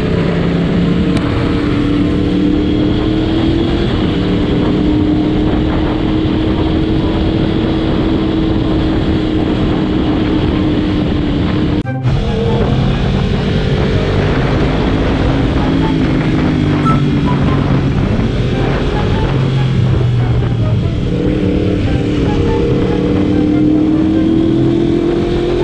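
A motorcycle engine hums steadily, its pitch rising and falling gently.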